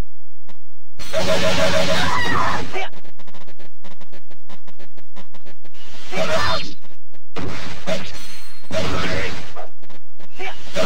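Swords clash and strike in a loud battle.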